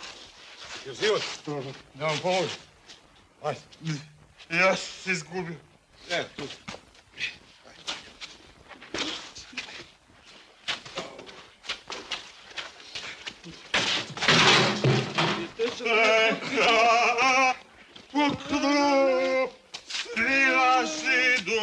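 Men talk loudly and urgently nearby.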